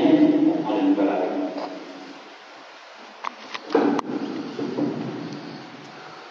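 A young man speaks loudly into a microphone, echoing in a large hall.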